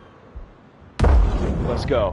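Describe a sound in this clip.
A rifle fires a single loud, sharp shot.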